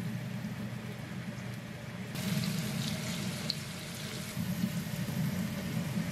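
Water bubbles at a rolling boil.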